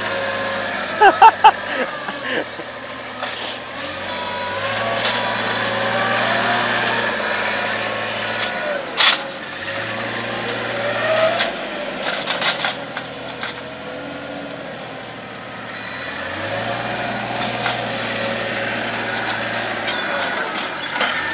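A tractor engine runs steadily nearby, revving up and down.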